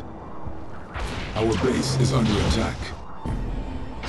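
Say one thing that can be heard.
Laser beams zap rapidly.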